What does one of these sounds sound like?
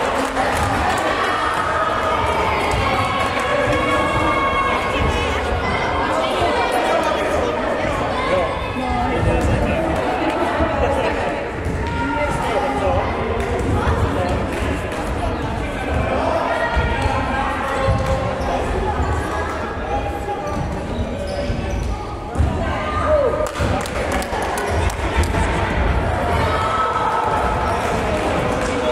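Children shout and call out in a large echoing hall.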